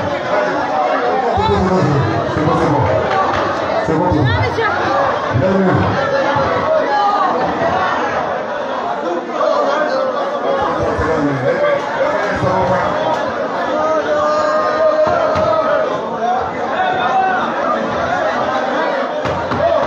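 A crowd chatters and calls out in the background.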